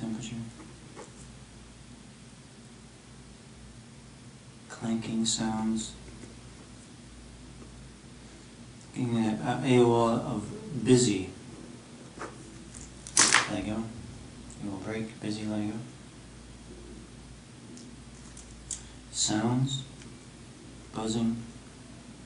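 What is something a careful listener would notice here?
A pen scratches across paper.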